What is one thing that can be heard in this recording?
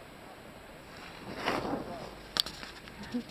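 Skis scrape and hiss across snow as a skier passes close by.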